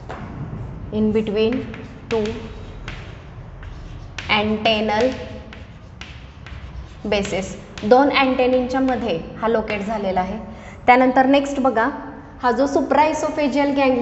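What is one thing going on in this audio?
A woman speaks calmly, as if teaching.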